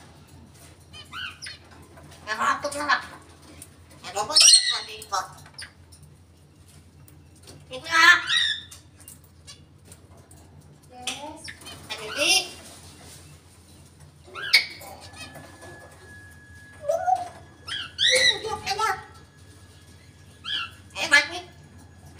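A parrot whistles, squawks and chatters in short bursts close by.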